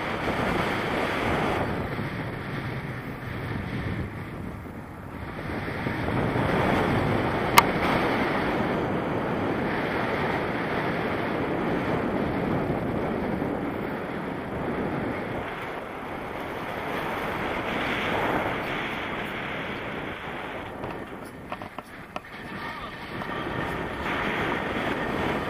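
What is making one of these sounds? Wind rushes loudly past a microphone in flight.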